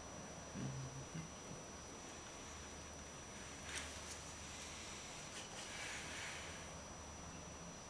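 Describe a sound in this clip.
A tool scrapes softly across a painted board.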